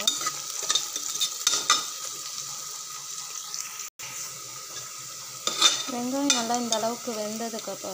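A metal spoon scrapes against a metal pot.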